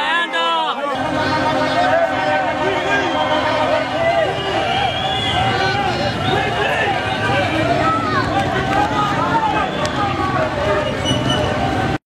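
A large crowd chants and sings outdoors.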